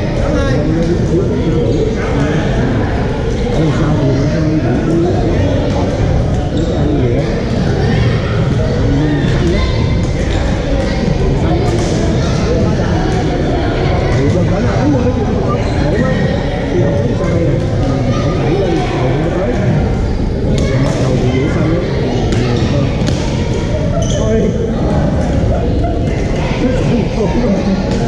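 Many people talk and call out at once across a large echoing gym.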